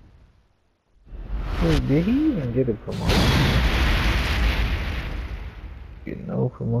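A loud rushing whoosh sweeps in and slowly fades.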